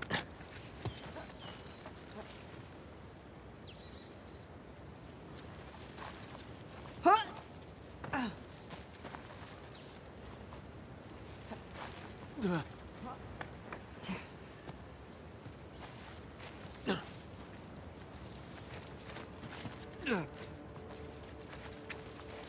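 Leaves rustle as a man pushes through dense plants.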